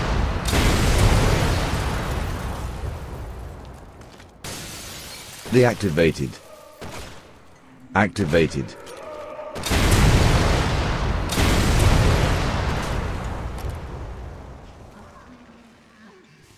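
A heavy rocket launcher fires with a loud boom that slowly fades.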